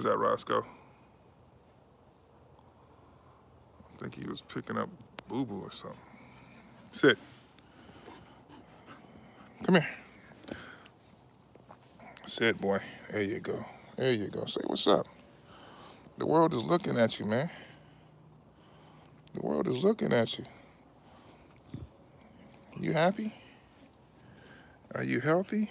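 A man talks calmly and close up.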